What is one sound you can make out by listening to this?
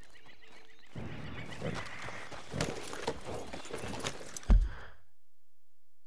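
A horse's hooves thud on the ground.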